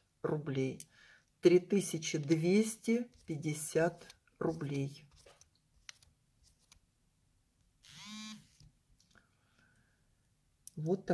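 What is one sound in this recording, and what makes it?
Beads click softly as hands handle them.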